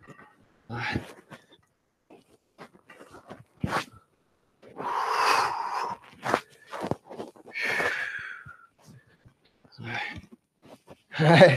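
Feet shuffle and tap on a hard floor.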